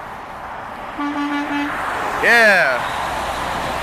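A truck horn blasts loudly as it passes, dropping in pitch.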